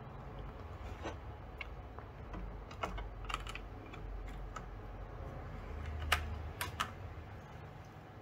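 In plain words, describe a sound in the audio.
A plastic frame clicks and knocks against a surface.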